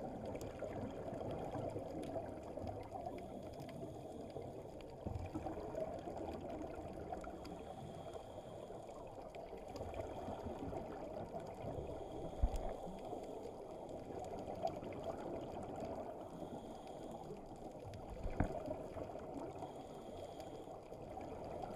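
Air bubbles from scuba divers burble and gurgle loudly underwater.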